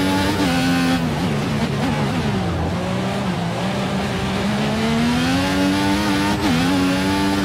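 A racing car engine winds down under braking and then revs back up.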